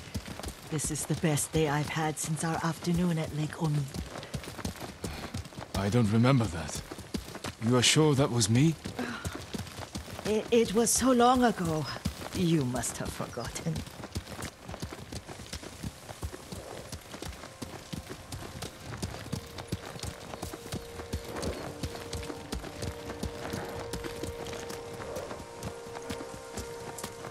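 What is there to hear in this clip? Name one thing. Horse hooves clop slowly on a dirt path.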